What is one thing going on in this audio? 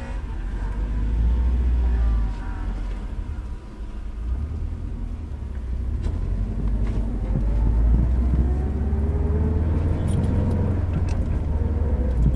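A car engine revs and drones loudly from inside the cabin, rising in pitch as the car speeds up.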